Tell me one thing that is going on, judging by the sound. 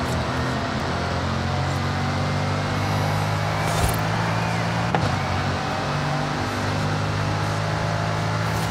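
A powerful car engine roars steadily at high speed, shifting gears.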